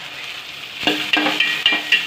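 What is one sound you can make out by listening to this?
A metal spoon scrapes and stirs inside a pan.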